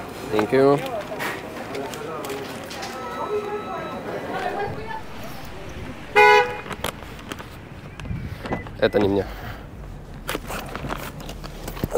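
Paper rustles and crinkles in a hand.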